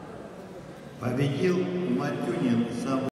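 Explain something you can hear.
A man speaks loudly and close by in a large echoing hall.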